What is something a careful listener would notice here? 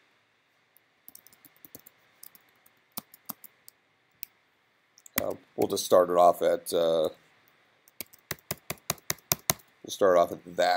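Keys clack quickly on a computer keyboard.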